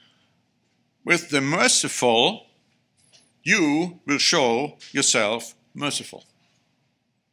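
A middle-aged man speaks calmly and deliberately into a microphone, pausing between phrases.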